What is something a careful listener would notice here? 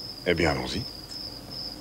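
A man speaks briefly and quietly.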